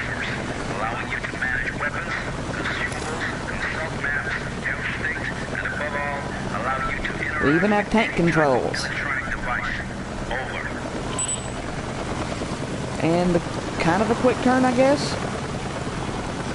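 A man talks casually into a microphone.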